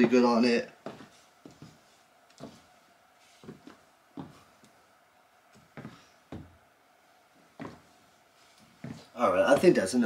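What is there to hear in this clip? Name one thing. Sneakers tap and shuffle on a wooden floor.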